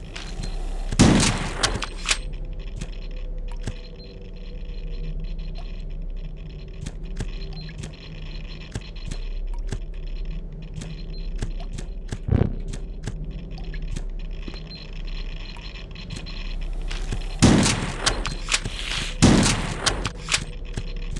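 A shotgun fires loud booming blasts in a game.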